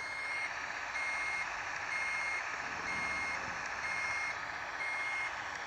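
A turn signal beeps in a steady, even rhythm.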